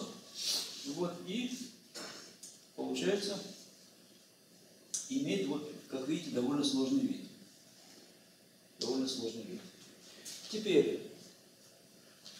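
An elderly man speaks calmly in short bursts with pauses.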